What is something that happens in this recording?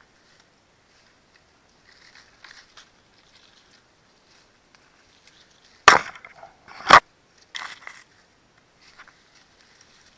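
Leaves and branches rustle as they are pushed aside.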